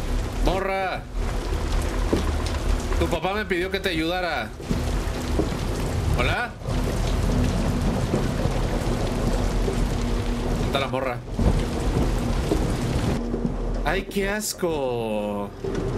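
A young man talks into a close microphone in short bursts.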